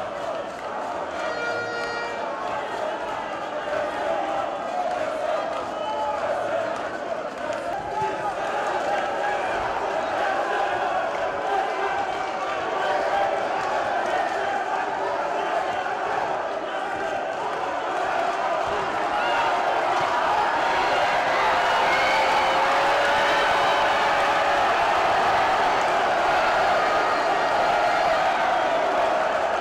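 A large crowd cheers and roars throughout, growing louder.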